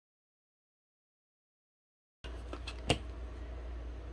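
A glue gun knocks against a table as it is picked up.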